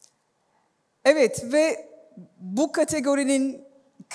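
A woman speaks through a loudspeaker in a large hall.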